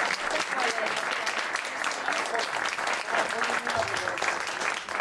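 A woman sings into a microphone over a loudspeaker.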